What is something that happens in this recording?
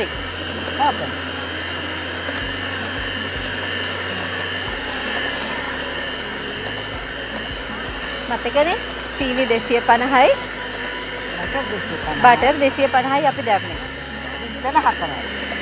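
An electric hand mixer whirs steadily.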